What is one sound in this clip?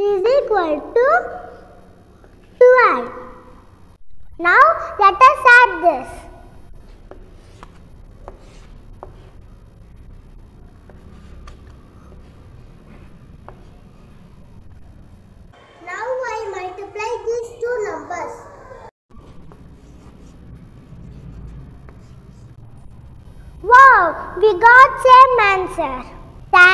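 A young boy speaks clearly and with animation, close to a clip-on microphone.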